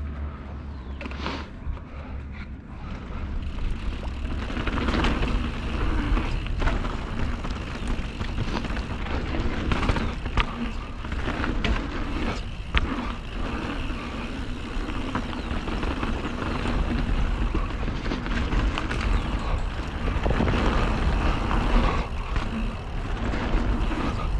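Wind rumbles loudly outdoors.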